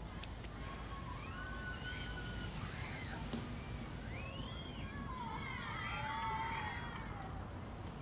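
Children shout and play in the distance.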